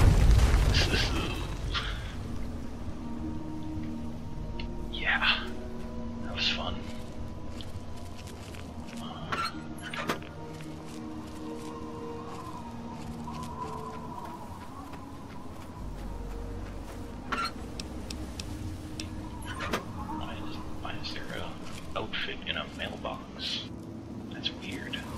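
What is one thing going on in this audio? Footsteps crunch on gravel and pavement.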